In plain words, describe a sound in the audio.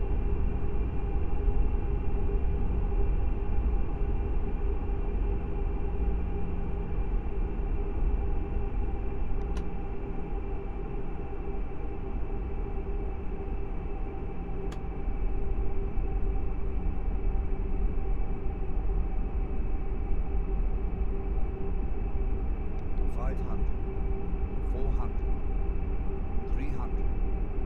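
Jet engines roar with a steady low rumble.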